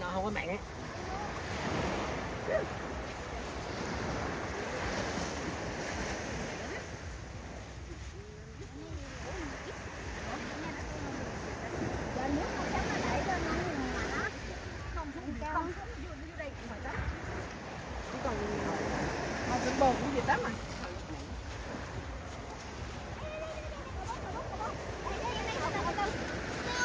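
Several men and women talk and call out nearby.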